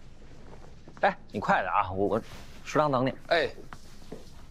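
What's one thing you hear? A young man speaks in a friendly tone nearby.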